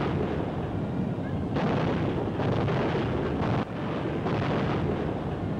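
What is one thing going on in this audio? Tank tracks clatter and squeal.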